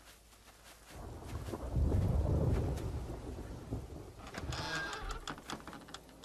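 A wooden door creaks and scrapes open.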